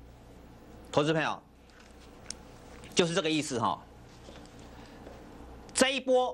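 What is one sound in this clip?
A man speaks calmly and clearly into a close microphone in short bursts.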